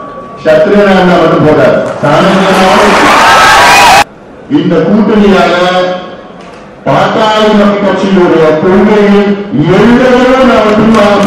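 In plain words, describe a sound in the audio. A man speaks forcefully into a microphone over loudspeakers, in a large hall.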